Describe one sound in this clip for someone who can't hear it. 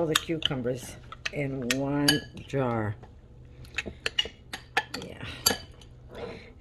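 A metal spoon clinks and scrapes against a ceramic bowl.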